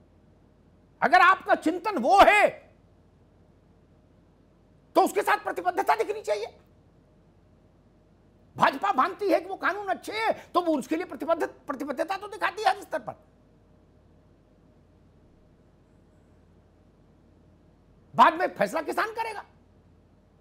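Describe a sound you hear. A man speaks with animation through a microphone, in bursts with pauses.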